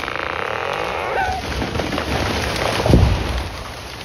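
Wood cracks and splits as a tree gives way.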